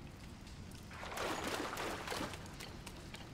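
Water splashes loudly as a figure lands in it.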